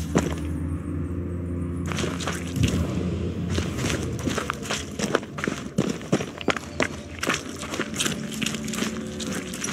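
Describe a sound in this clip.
Boots thud and scrape on a rough dirt floor.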